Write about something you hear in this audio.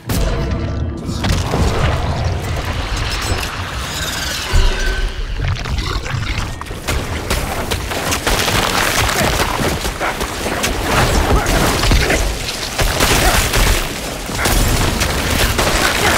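Weapons slash and clash in a fierce fight.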